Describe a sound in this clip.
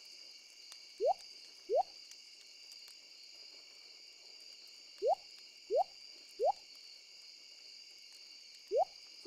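Short rising pops sound as items are moved.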